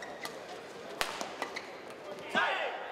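A racket strikes a shuttlecock with sharp cracks.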